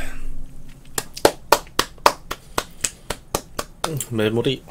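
A young man claps his hands quickly in a rapid run.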